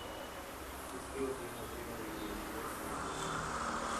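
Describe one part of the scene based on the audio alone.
Hot oil sizzles softly in a fryer.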